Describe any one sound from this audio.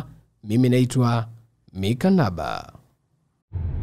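A man speaks briefly and calmly close by.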